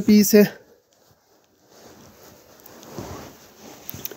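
Fabric rustles softly as it is unfolded.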